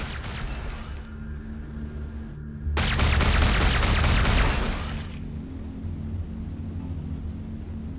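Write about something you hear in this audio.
A spacecraft engine hums steadily.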